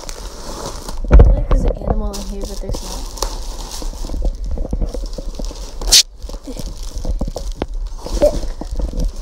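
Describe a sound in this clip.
A cardboard box scrapes and thumps as it is moved.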